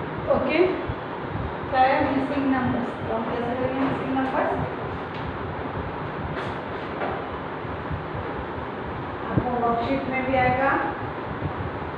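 A woman speaks clearly and calmly, nearby.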